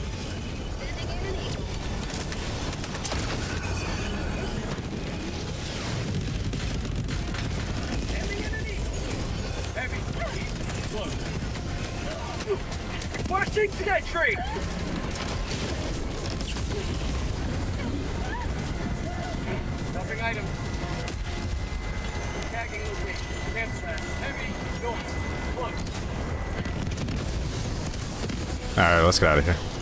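Gunfire and explosions rumble from a game.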